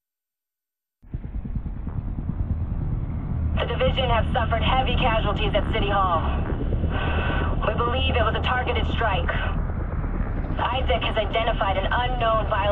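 A helicopter's rotor thumps close by.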